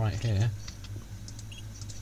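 Keypad buttons beep as a code is entered.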